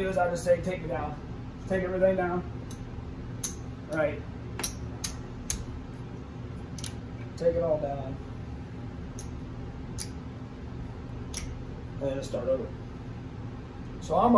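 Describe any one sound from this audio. Casino chips click against each other.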